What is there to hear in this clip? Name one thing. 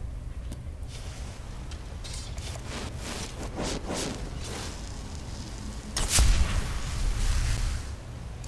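A magic spell hums and crackles, then bursts loudly.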